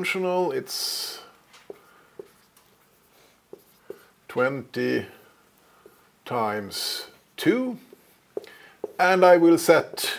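A man lectures aloud, speaking calmly in short phrases.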